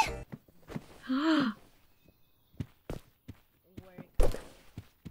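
A young woman speaks briefly and softly through a microphone.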